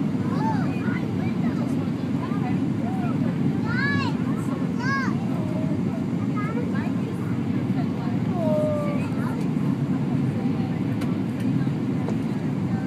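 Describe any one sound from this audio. A jet engine roars steadily from inside an airliner cabin.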